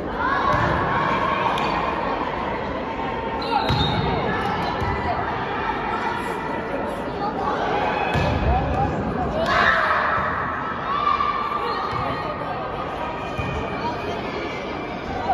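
Young girls shout and call out in a large echoing hall.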